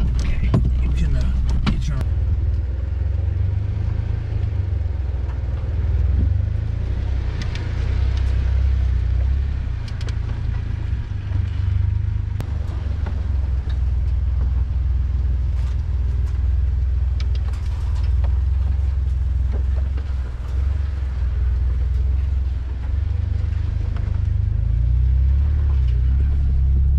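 A vehicle engine rumbles low and steady nearby.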